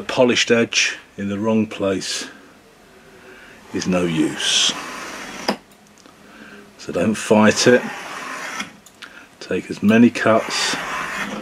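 A knife blade scrapes along a metal bar in repeated strokes.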